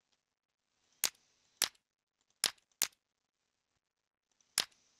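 Blocks are placed with short, sharp clicks, several times.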